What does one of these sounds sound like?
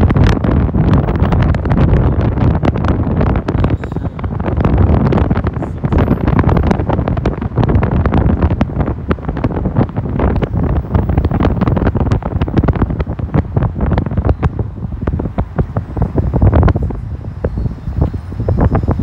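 Wind buffets and rumbles loudly.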